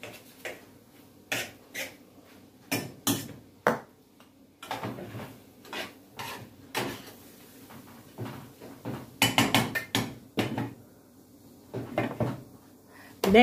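A spoon scrapes and clinks against a frying pan.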